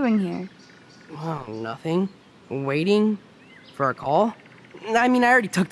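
A young man answers in a relaxed, slightly hesitant voice.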